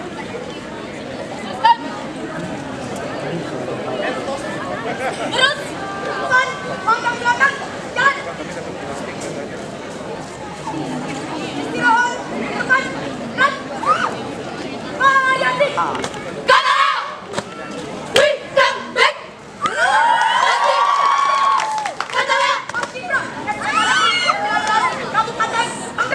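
Young women shout commands in unison outdoors.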